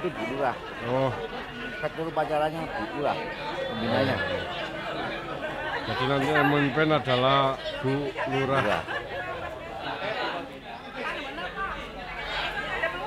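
A middle-aged man speaks close by, calmly and clearly.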